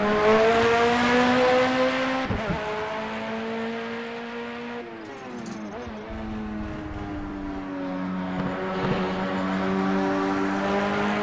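A race car engine roars at high revs, shifting gears as it passes and fades into the distance.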